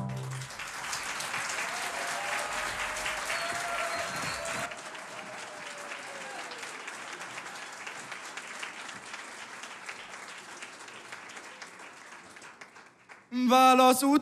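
An audience claps steadily in a large hall.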